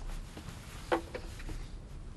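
A porcelain dish clinks against a table.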